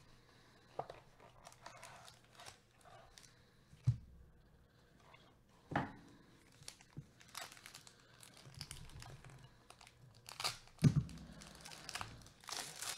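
Gloved hands rustle and crinkle a foil wrapper.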